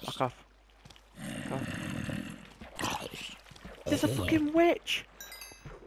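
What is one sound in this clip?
A sword strikes a zombie with dull thuds.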